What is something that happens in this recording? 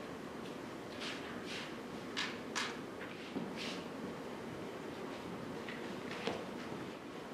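Footsteps tap across a wooden floor.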